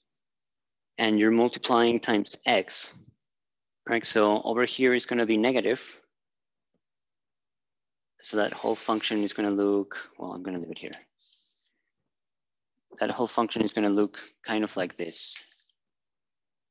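A man speaks calmly and clearly, as if lecturing.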